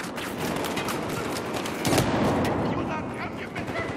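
An explosion booms with a loud blast.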